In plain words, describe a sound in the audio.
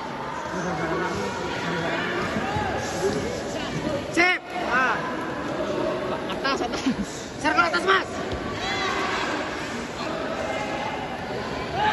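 Fighters' bare feet thud and slap on a mat during sparring.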